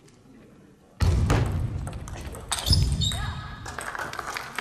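A young player shouts loudly in celebration.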